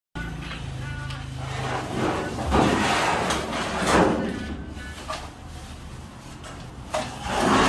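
Heavy metal parts clank and scrape as they are loaded onto a hand trolley.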